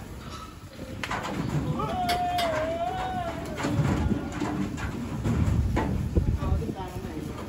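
Pig hooves thump and clatter on a metal truck floor.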